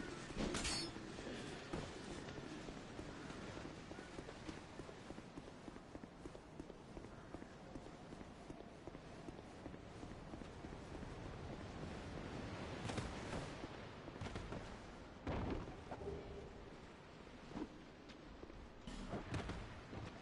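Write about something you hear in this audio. Footsteps tread on stone as a figure runs.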